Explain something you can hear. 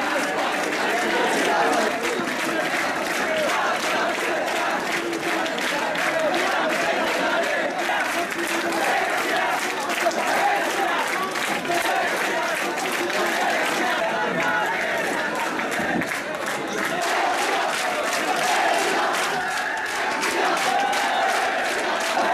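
A crowd of men chatters and talks over one another close by.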